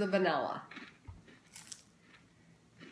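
A woman bites into crunchy food.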